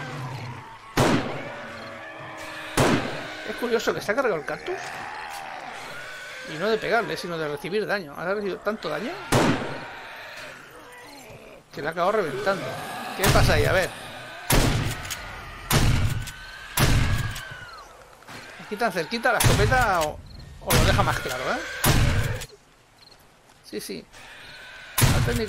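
A rifle fires single loud shots, one every second or two.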